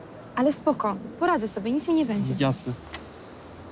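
A young woman speaks urgently up close.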